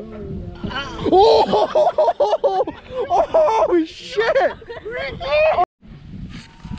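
Young men shout and laugh loudly close by.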